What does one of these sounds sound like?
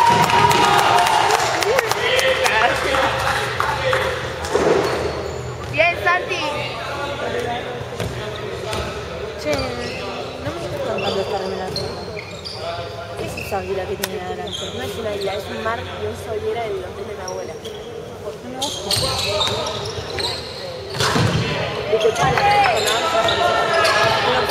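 Spectators cheer and chatter in the stands.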